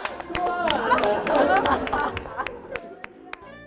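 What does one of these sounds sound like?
People laugh loudly together.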